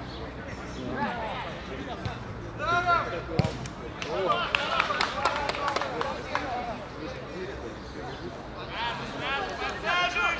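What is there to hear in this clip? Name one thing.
Young boys shout and call out outdoors.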